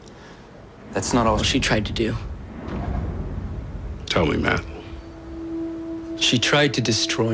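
A young man speaks quietly and tensely.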